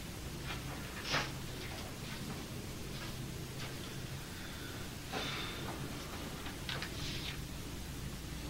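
An elderly man reads aloud in a quiet, calm voice.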